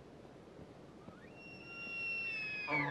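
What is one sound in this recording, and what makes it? A bull elk bugles with a high, rising whistle.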